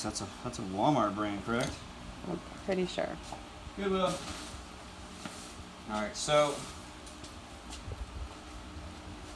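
Clothes rustle as they are handled.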